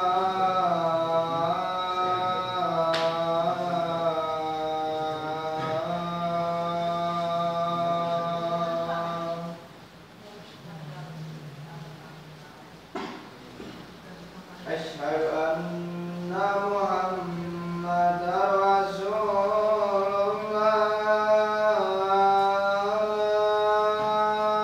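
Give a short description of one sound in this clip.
An adult man chants a long, melodic call in a loud, drawn-out voice nearby.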